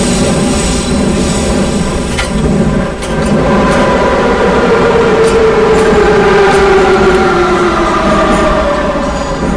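A subway train rumbles steadily through a tunnel.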